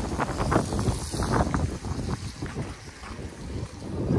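A bicycle rolls past.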